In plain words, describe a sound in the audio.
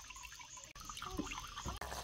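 A knife slices through a tomato.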